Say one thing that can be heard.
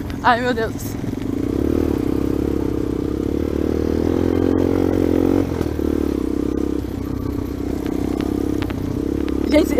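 A dirt bike engine runs as the bike rides along.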